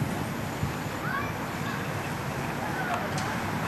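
A crowd of adults and children chatters quietly nearby.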